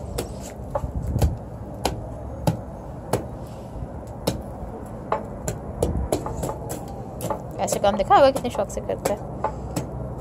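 A metal rod clinks and scrapes against a small furnace.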